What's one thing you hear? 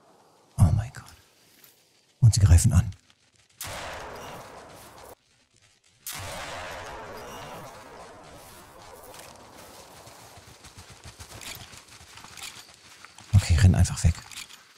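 Loud gunshots boom and echo.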